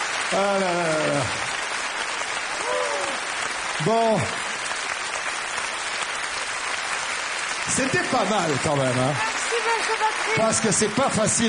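An audience applauds steadily throughout.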